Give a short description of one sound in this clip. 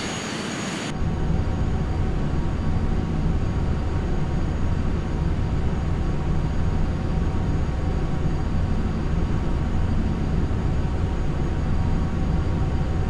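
A deep engine rumble fills an aircraft cockpit.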